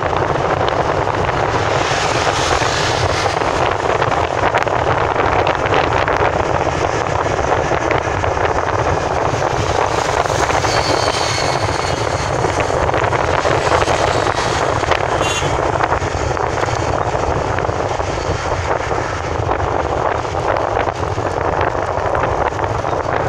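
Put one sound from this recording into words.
Wind and road noise roar steadily from inside a moving vehicle.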